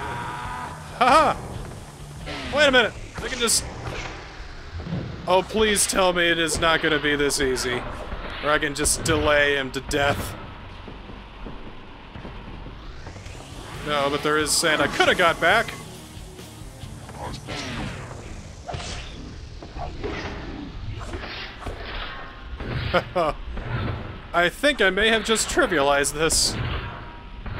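Blades swish and clang in a fight.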